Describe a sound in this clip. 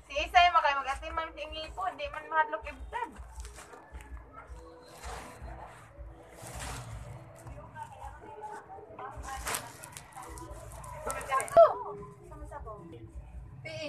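A young child talks and babbles close to the microphone.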